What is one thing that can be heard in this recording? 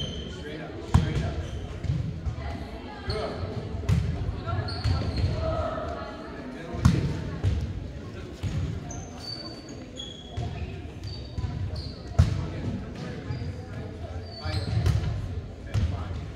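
A crowd of spectators chatters and cheers nearby.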